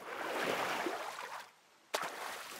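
A person wades through shallow water, splashing.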